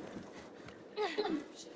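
A young woman grunts with effort while climbing onto a horse.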